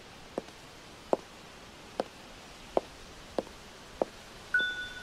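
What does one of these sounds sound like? High heels click on stone paving at a steady walking pace.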